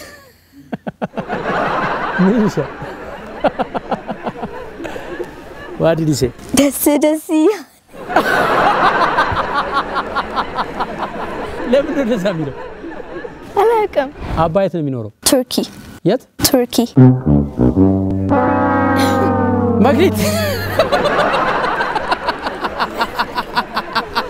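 A young girl giggles close by.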